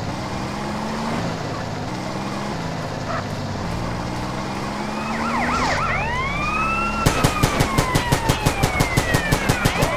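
A car engine revs and drones steadily.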